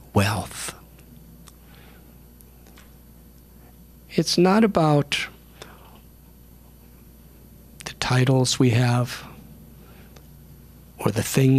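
An elderly man speaks calmly into a microphone in short phrases with pauses.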